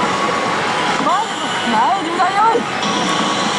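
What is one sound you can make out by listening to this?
Voices from a slot machine's speaker cry out in high, sliding tones.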